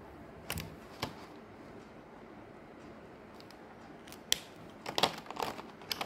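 Plastic markers click and clatter against each other.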